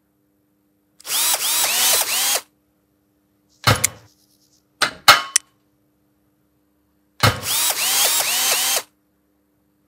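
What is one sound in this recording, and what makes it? An impact wrench whirs in short bursts, loosening wheel nuts.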